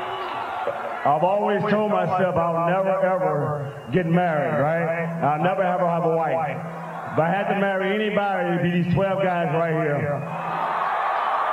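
A man sings loudly through a microphone over a loudspeaker outdoors.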